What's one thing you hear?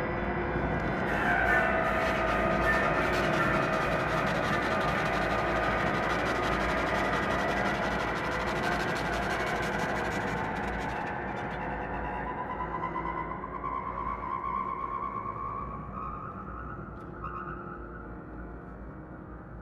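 A clarinet plays a long wavering line.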